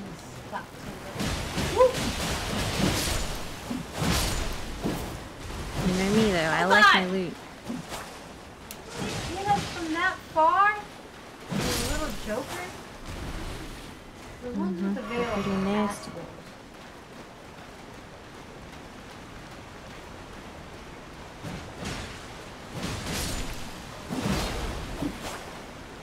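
Swords clash and slash in heavy blows.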